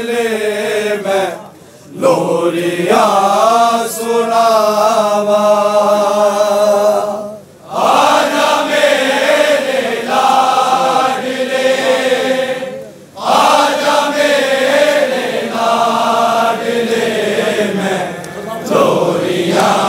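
A large crowd of men chants loudly together in long sung phrases with short pauses.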